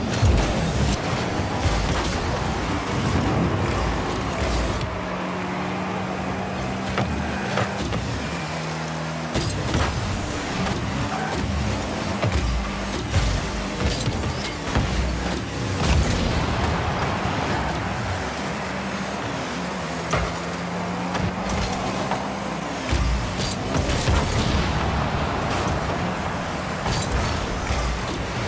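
A game car engine hums and boosts with a rushing roar.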